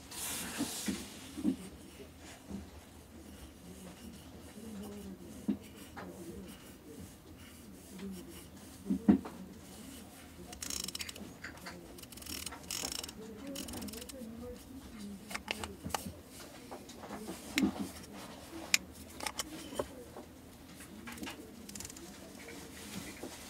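Gloved hands softly rub and turn a lens with small clicks.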